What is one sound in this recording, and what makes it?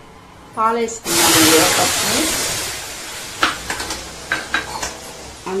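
Liquid pours into a hot pan and sizzles loudly, then fades.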